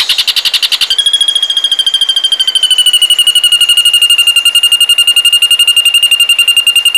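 A bird sings a fast, steady, high buzzing trill.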